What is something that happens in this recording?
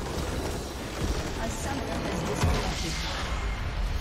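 A loud explosion booms in a video game.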